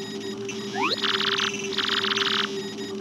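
Rapid electronic blips chatter in quick bursts.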